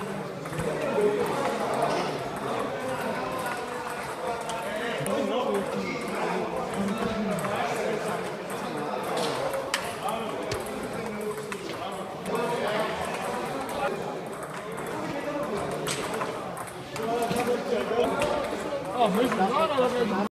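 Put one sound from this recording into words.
Men talk and call out nearby in a large echoing hall.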